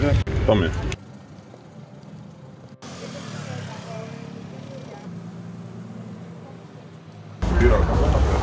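Traffic rumbles along a street nearby.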